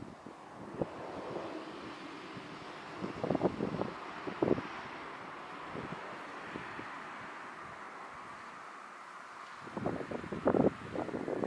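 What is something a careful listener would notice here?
Cars pass on a distant road with a soft tyre hiss.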